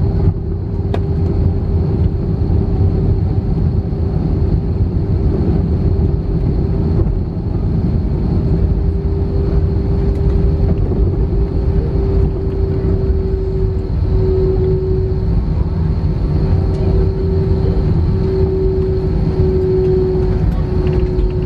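A steady hum drones inside the cabin.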